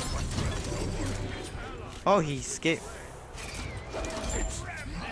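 A magic beam crackles and hums in a video game battle.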